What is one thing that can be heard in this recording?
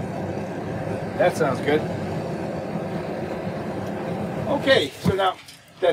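Gas hisses steadily from a burner, then stops.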